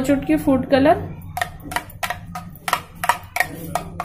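A spoon clinks and scrapes against a ceramic bowl while stirring.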